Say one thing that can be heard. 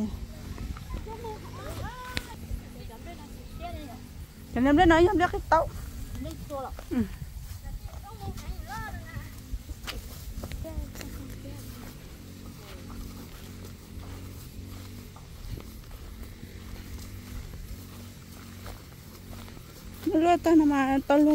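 Footsteps swish through wet grass.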